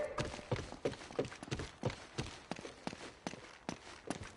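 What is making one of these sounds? Footsteps climb wooden stairs.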